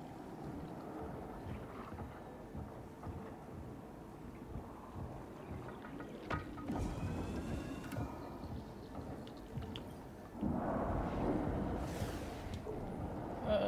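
Muffled underwater sounds rumble and swirl.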